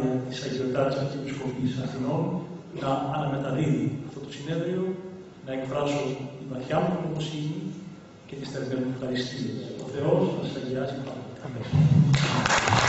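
An elderly man speaks calmly and steadily into a microphone in a large hall.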